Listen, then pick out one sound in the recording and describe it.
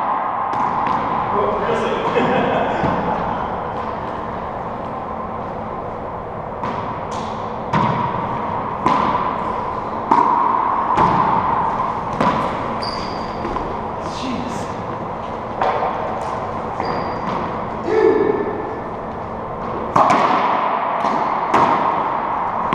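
A racquetball smacks off the walls with sharp echoing cracks in a large hard room.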